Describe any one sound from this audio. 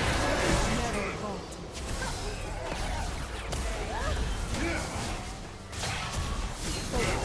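Spell effects whoosh and crackle in a game battle.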